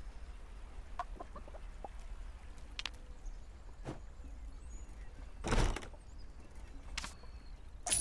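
Soft game button clicks sound now and then.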